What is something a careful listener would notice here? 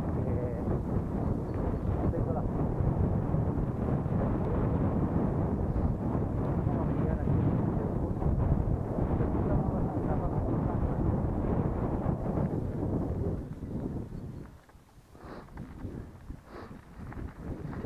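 Bicycle tyres roll and rumble over a bumpy dirt trail.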